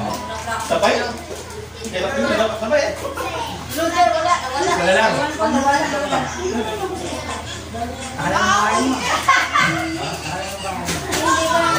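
Several adults talk and chatter nearby.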